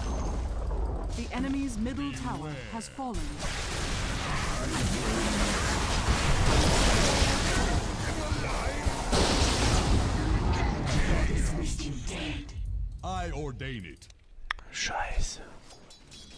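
A young man comments with animation through a close microphone.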